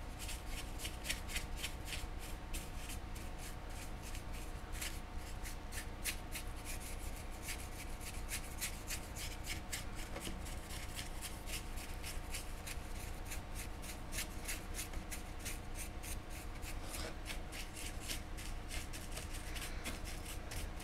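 A small brush scrapes and taps against a hard surface in quick, repeated strokes.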